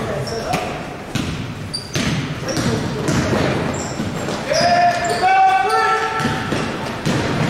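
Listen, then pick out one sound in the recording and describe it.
Sneakers squeak sharply on a hardwood floor in an echoing gym.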